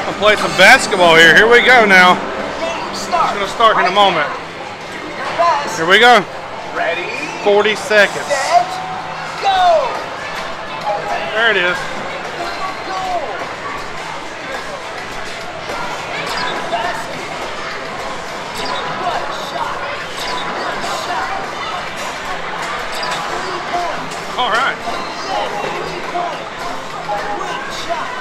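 Arcade machines play electronic jingles and beeps.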